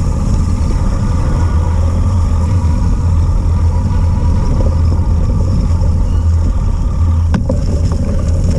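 Wind buffets loudly against a moving microphone outdoors.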